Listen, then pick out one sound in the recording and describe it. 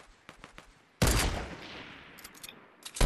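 A rifle fires a single loud, booming shot.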